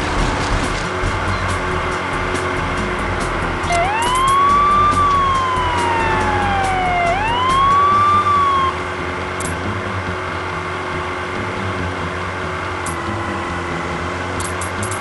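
A small boat engine hums steadily as a jet ski speeds over water.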